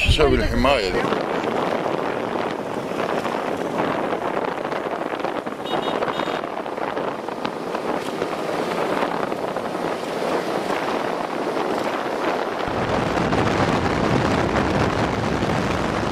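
A vehicle's engine hums and its tyres roll steadily on the road.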